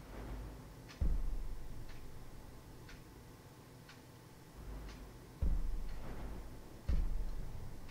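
A deep soft whoosh sounds each time a game menu selection shifts.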